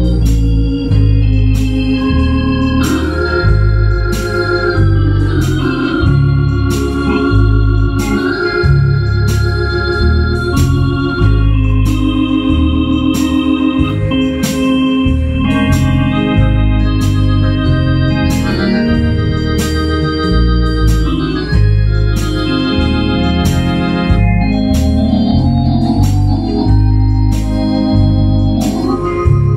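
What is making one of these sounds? A keyboard's drum backing beats out a steady rhythm.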